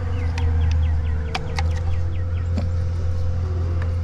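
Plastic pipe fittings knock and scrape together.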